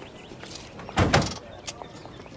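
A heavy car door slams shut.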